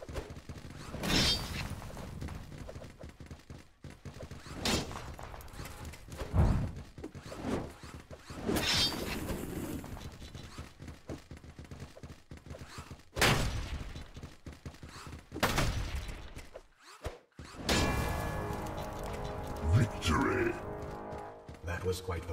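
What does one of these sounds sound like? A young man talks into a microphone with animation.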